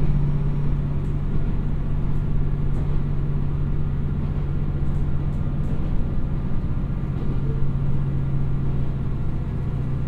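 A diesel train engine hums steadily nearby.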